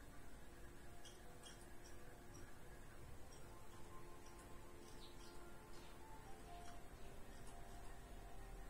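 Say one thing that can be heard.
A computer mouse clicks softly now and then.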